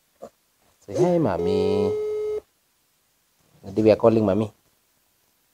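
A phone's small speaker plays a high, sing-song voice.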